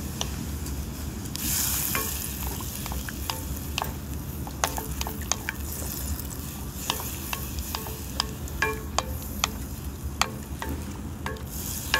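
A wooden spoon scrapes and stirs in a metal pot.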